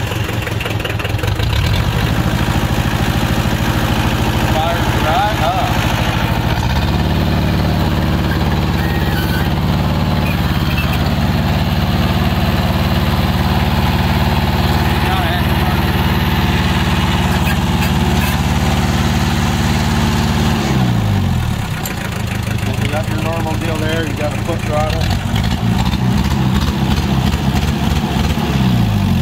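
A tractor engine runs loudly close by, revving up and settling back down.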